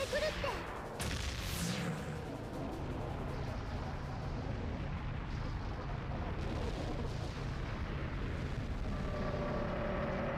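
A loud magical blast whooshes and rumbles on steadily.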